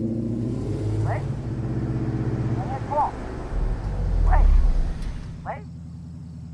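A young woman calls out anxiously into a phone.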